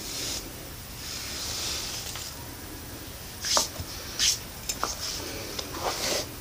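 Hair rustles as a young woman runs her hands through it.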